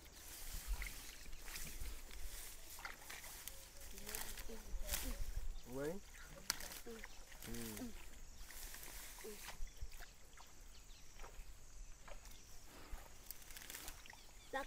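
Leafy plants rustle as a boy pushes through them.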